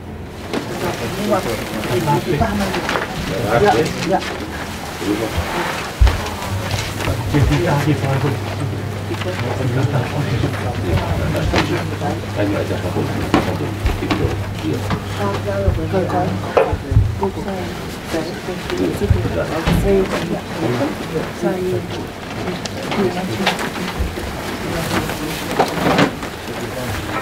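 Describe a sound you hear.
Woven mats rustle and scrape as people move.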